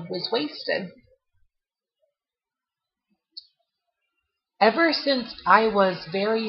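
A young woman speaks casually and close up into a webcam microphone.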